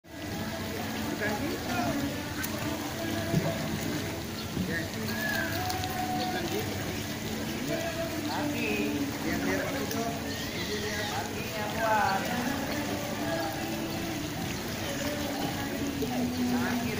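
Children call out and chatter nearby, outdoors.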